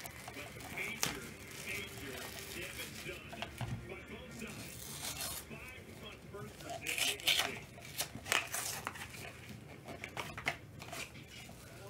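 Plastic wrapping crinkles and tears as a pack is opened.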